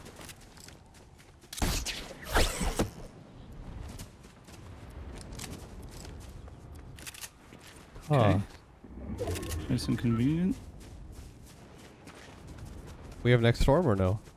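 Footsteps patter quickly on grass.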